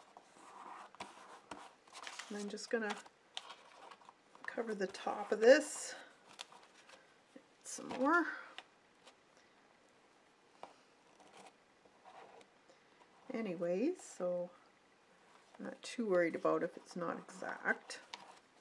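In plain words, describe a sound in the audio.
Paper rustles softly under hands pressing and smoothing it.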